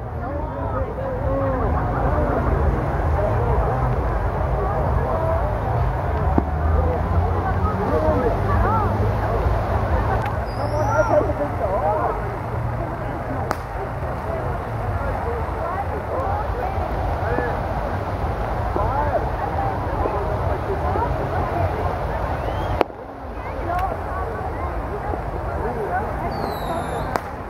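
A crowd of men, women and children chatters and calls out outdoors.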